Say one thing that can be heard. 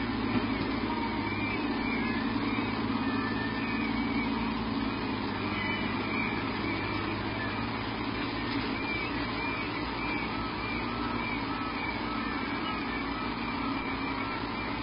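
A large bird shuffles and settles on a nest of dry twigs.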